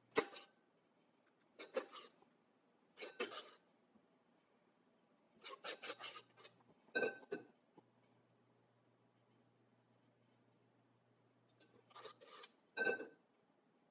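A spoon scrapes and taps against a dish.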